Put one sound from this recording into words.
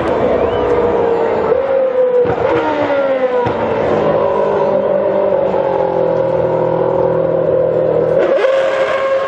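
A racing car engine screams loudly, shifting gears as it passes close by.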